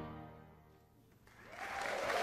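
A big band's final chord rings out and fades.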